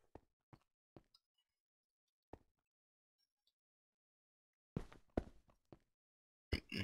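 Short knocks of blocks being placed sound now and then.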